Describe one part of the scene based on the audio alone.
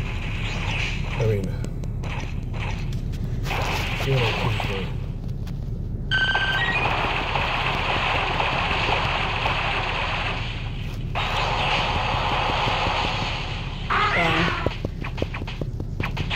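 Electronic battle sound effects whoosh and blast steadily.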